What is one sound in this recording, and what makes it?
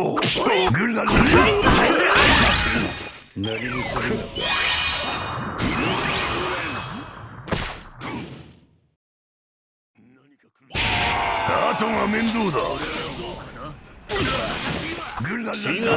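Video game battle effects whoosh and crash.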